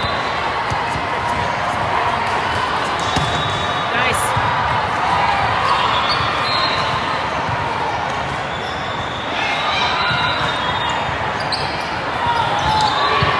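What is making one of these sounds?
A crowd murmurs and cheers throughout a large echoing hall.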